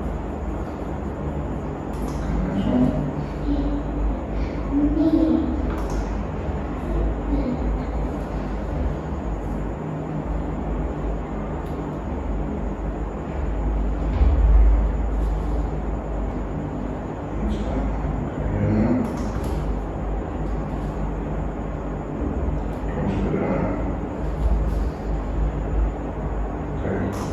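A young girl answers in a small voice.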